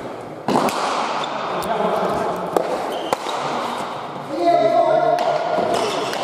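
A hard ball smacks sharply against the walls and floor, echoing through a large hall.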